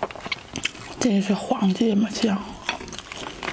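A plastic sauce bottle squelches and sputters as it is squeezed.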